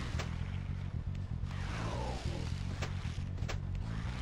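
A whooshing sound swells as a character leaps.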